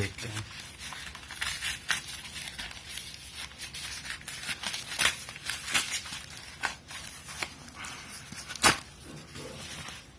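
Paper wrapping crinkles and tears.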